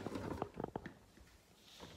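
Fabric rustles and knocks against the microphone.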